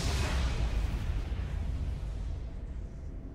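A magical blast bursts loudly and fades away.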